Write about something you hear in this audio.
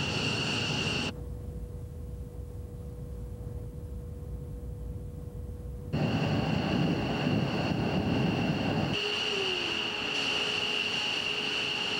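Jet engines whine loudly and steadily nearby.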